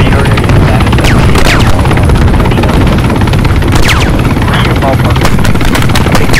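A helicopter's engine whines steadily.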